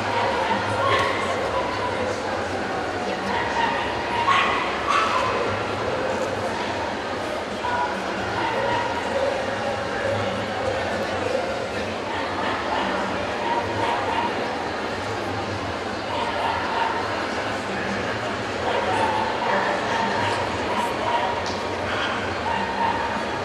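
A crowd chatters steadily in a large echoing hall.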